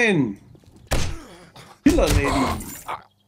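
A blade hits a body with heavy thuds.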